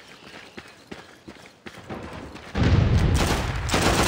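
Gunshots crack from a rifle in short bursts.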